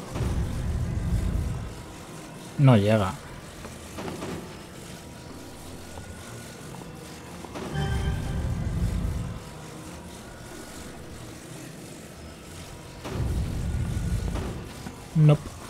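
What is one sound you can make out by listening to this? A low, humming drone swells and fades in repeated bursts.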